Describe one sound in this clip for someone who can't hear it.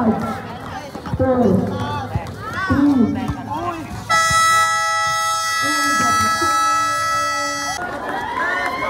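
A crowd shouts and cheers outdoors.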